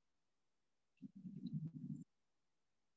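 A man murmurs faintly and muffled over an online call.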